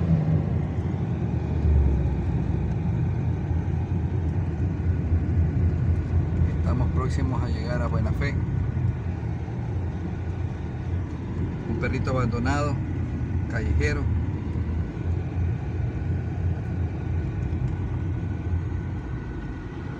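A car engine hums steadily with low road rumble from inside a moving car.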